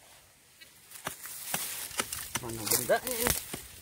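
A small pick chops repeatedly into hard, dry soil.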